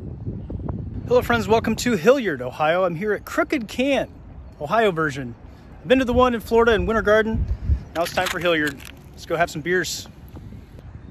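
A middle-aged man speaks calmly and close up, outdoors.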